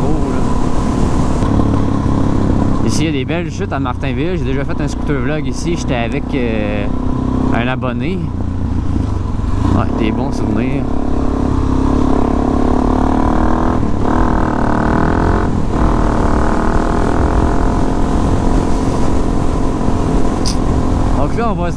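A motorcycle engine hums steadily and shifts pitch as the bike speeds up and slows down.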